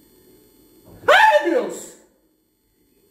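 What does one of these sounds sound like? A woman cries out in surprise close by.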